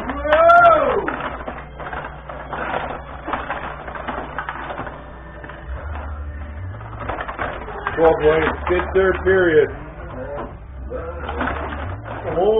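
Plastic players on a table hockey game clack and rattle as rods are spun and pushed.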